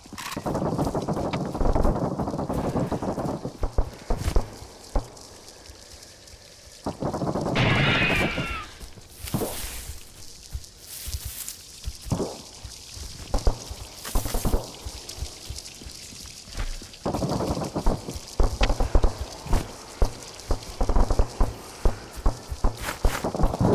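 Footsteps crunch quickly over dirt and gravel.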